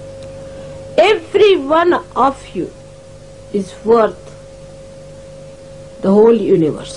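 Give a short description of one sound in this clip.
An older woman speaks calmly through a microphone, with long pauses.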